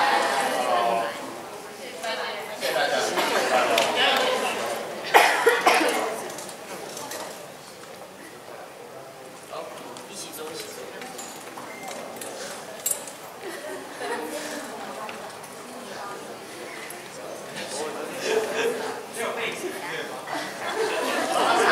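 A young man speaks through a microphone in an echoing hall.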